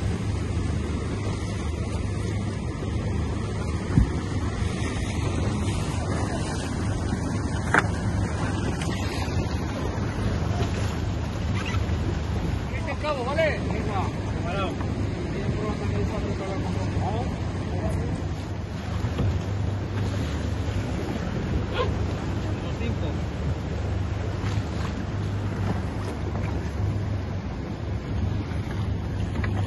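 A boat's outboard engine roars steadily.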